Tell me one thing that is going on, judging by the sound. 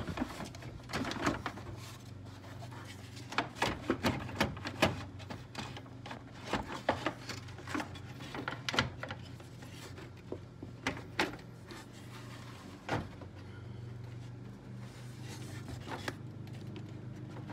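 Plastic parts click and knock as a hand works on a car engine.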